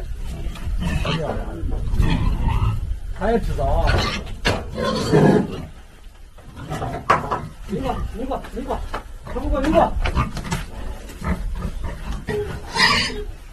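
A man talks loudly close by.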